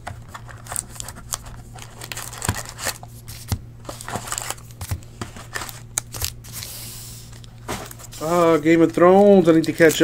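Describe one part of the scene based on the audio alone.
Cardboard packs rub and slide against each other.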